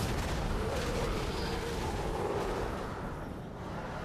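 Magic blasts and weapon strikes crash in a video game fight.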